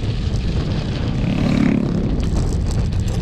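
A motorbike engine passes close by.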